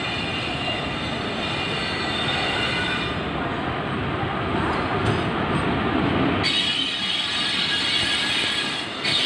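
A train rumbles and clatters along the track close by.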